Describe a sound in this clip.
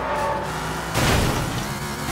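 A car crashes loudly into a barrier.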